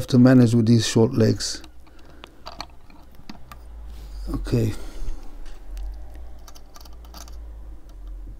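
Small metal parts click and tap against each other.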